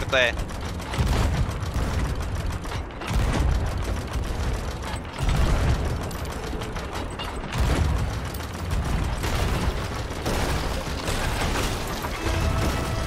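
Cannon shots boom repeatedly.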